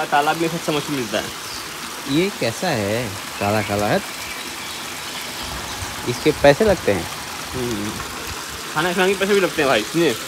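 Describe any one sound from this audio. Water trickles gently over a low stone step.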